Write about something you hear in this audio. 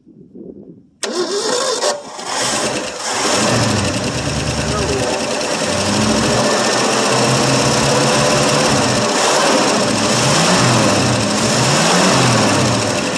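A car engine starts and runs with a loud, rough idle close by.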